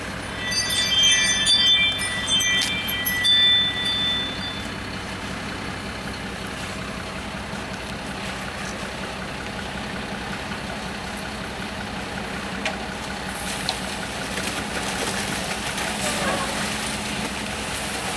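A concrete mixer truck's engine rumbles steadily nearby.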